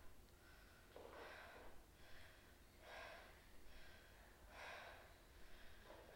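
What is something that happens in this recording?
A young woman breathes slowly and deeply nearby.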